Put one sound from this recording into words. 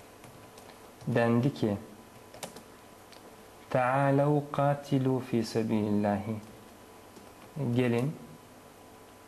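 A man speaks calmly and slowly, close to a microphone, with long pauses.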